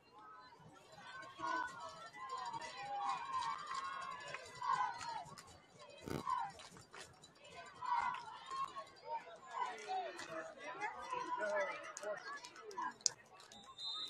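A crowd of young men on a sideline shouts and cheers outdoors.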